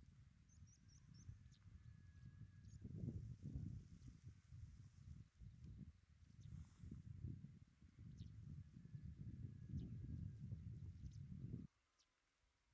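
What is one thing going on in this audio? Wind buffets loudly outdoors, then suddenly drops away.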